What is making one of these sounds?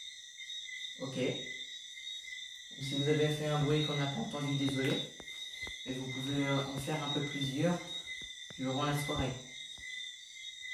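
A teenage boy speaks close by, in short bursts.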